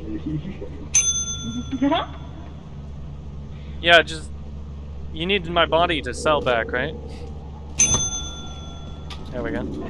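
A small bell rings with a clear, lingering tone.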